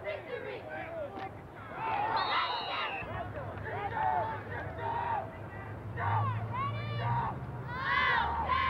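A crowd of spectators shouts and cheers nearby, outdoors.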